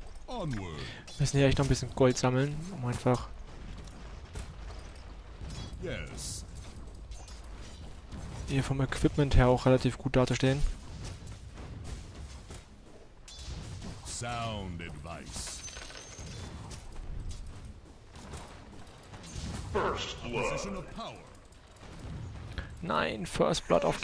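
Battle sound effects clash and crackle.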